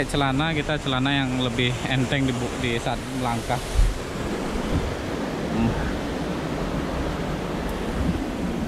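A small stream splashes and rushes over rocks nearby.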